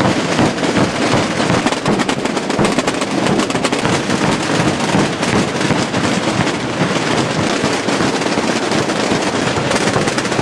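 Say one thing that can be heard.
Many drums pound loudly together in a dense, rapid rolling beat.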